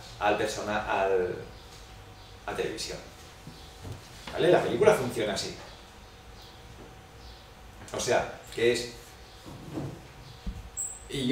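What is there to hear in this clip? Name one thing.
A middle-aged man speaks with animation into a nearby microphone, with pauses between phrases.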